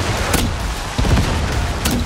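A laser gun fires with sharp crackling blasts.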